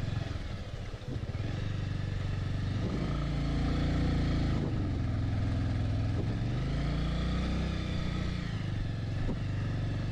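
A motorcycle engine rumbles steadily, rising and falling slightly in pitch.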